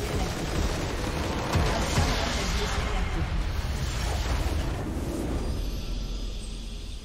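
A large structure explodes with a loud rumbling blast.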